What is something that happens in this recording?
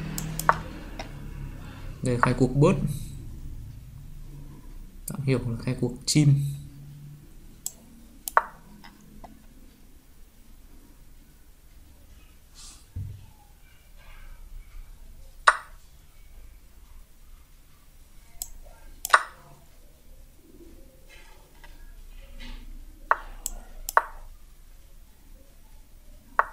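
Short sharp clicks sound now and then as chess pieces are moved in a game.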